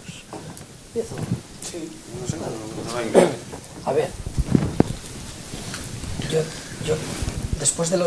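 A man at a panel table speaks quietly through a microphone.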